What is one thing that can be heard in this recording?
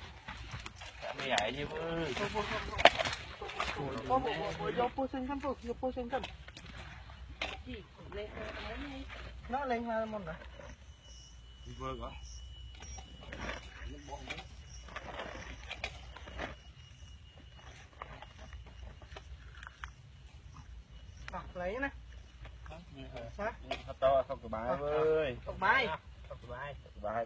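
Men talk nearby outdoors with animation.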